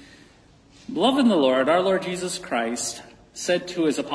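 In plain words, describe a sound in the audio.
A man speaks calmly through a microphone, echoing in a large hall.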